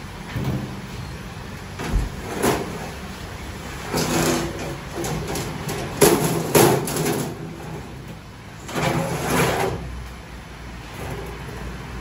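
A metal ladle scrapes and clatters against a large pan.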